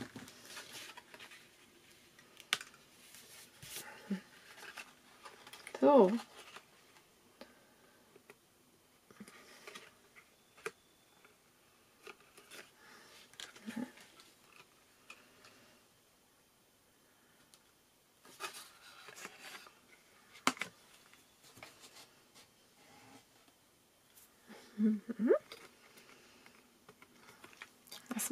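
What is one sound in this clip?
Stiff paper and card rustle and crinkle as hands fold them.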